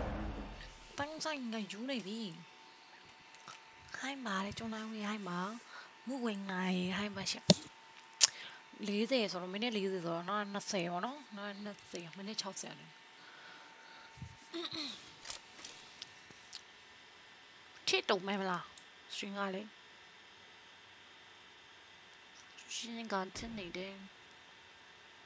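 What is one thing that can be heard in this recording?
A young woman talks with animation close to a microphone, in bursts with pauses.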